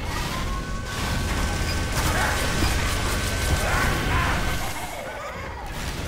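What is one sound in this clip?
A video game minigun fires in a rapid stream.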